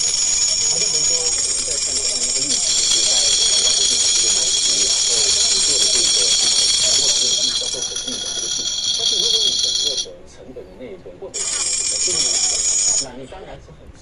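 Bright electronic game music plays from a small speaker.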